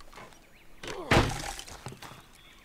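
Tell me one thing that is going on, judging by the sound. Wooden boards creak and thud as they are pushed.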